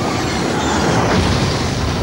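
A helicopter's rotor thumps.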